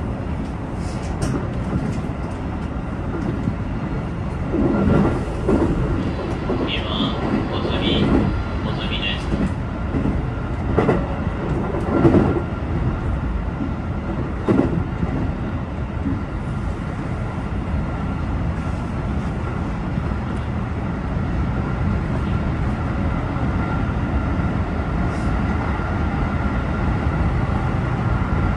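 A train rumbles steadily along the tracks, heard from inside the cab.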